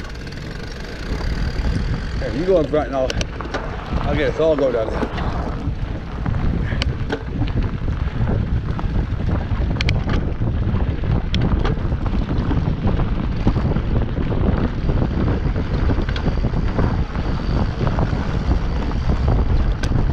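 A bicycle rattles and clicks over bumps.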